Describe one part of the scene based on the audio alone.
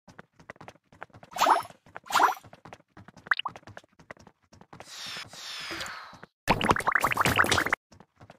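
Quick soft popping blips patter rapidly.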